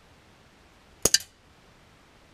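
A rifle fires a single loud shot outdoors.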